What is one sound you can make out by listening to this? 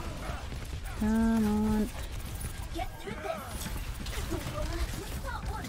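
Video game guns fire in rapid bursts.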